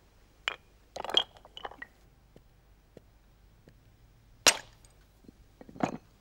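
A stone hammer strikes a flint with loud knocks.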